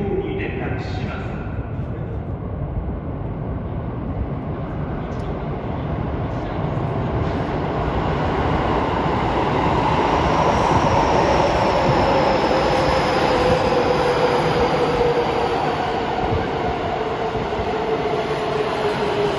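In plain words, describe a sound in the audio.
A train rumbles closer through an echoing tunnel and roars past.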